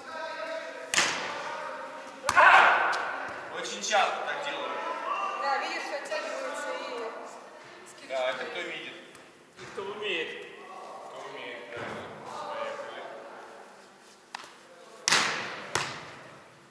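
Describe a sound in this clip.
A volleyball is struck hard with hands, echoing in a large hall.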